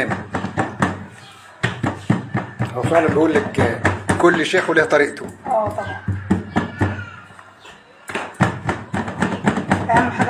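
Hands pat and press soft dough on a metal tray.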